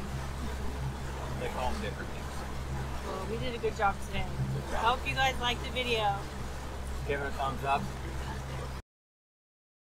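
Water rushes in a wake behind a boat.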